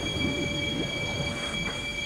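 A piano plays a tune.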